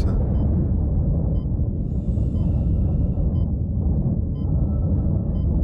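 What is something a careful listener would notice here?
A deep, steady rumble drones throughout.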